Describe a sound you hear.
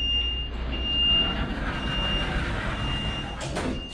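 Sliding doors rumble shut.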